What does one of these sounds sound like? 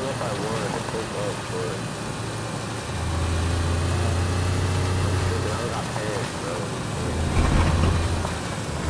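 Tyres rumble over a rough dirt track.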